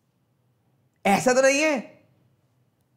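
A man laughs briefly.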